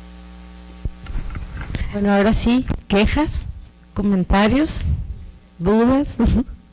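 A woman speaks into a microphone, heard through a loudspeaker.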